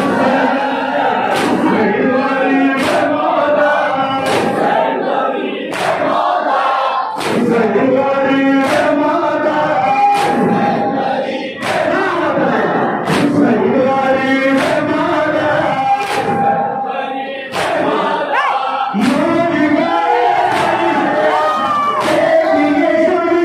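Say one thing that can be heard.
A large crowd of men chants along in unison.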